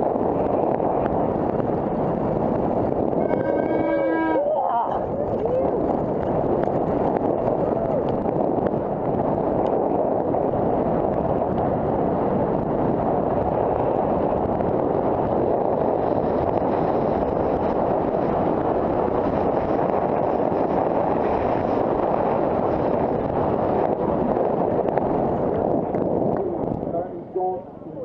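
Wind roars past a helmet microphone during a fast descent.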